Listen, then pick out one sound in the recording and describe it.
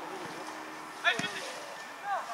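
Young men shout across an open field.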